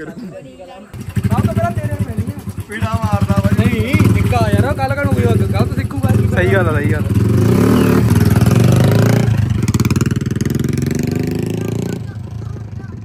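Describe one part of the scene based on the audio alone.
A motorbike engine revs and roars as it rides off.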